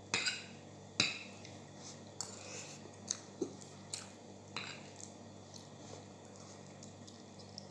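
A woman chews with loud smacking sounds.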